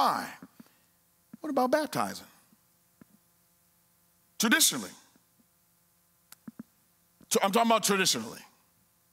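A man speaks with animation into a microphone, echoing in a large hall.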